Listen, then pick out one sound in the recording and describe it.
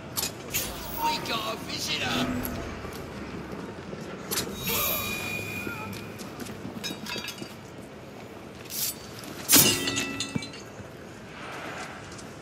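Footsteps scrape on stone and gravel.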